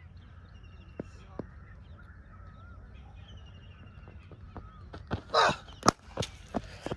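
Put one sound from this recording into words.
A cricket bat strikes a ball with a sharp crack outdoors.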